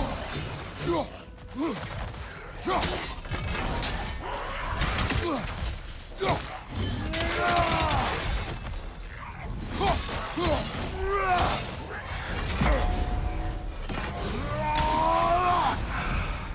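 Weapon blows whoosh and thud in quick bursts.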